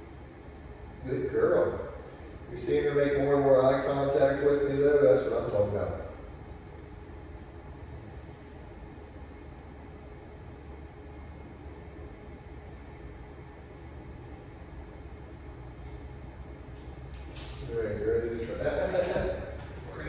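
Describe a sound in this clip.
A man speaks calmly nearby in an echoing room.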